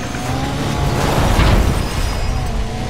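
Cars crash together with a loud metallic bang and scraping.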